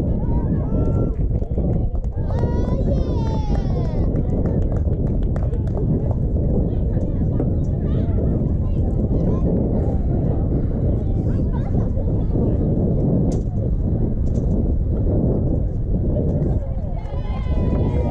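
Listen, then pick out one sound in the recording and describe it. Young girls shout and cheer across an open field.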